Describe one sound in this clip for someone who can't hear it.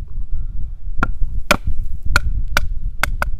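A knife knocks sharply against wood several times.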